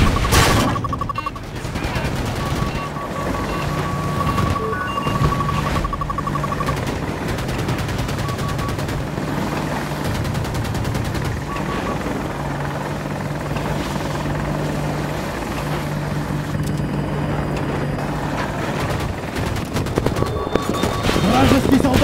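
A warning tone beeps rapidly and repeatedly.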